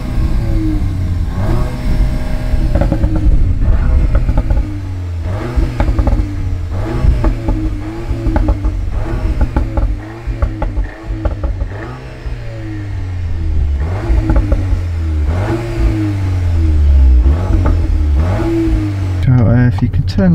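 A car engine revs and rumbles loudly through its exhaust.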